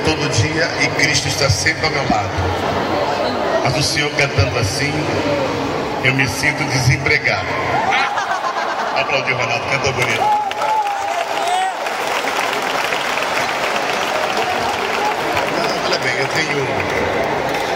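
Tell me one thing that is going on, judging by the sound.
A man sings into a microphone over loud speakers in a large echoing hall.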